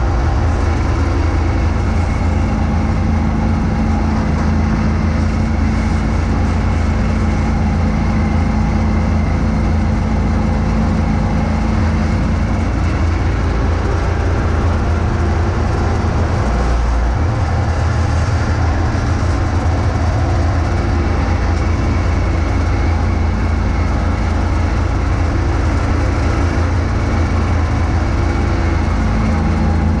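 A tractor engine drones loudly and steadily close by.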